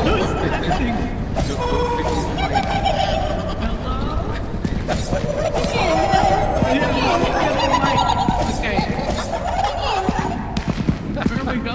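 A stick swishes and thumps in a scuffle.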